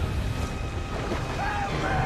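A young woman cries out while splashing in water.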